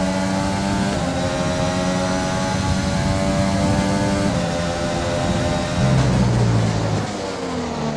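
A racing car engine screams at high revs, its pitch stepping up and down with gear changes.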